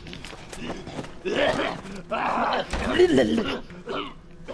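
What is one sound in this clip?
A man screams in agony.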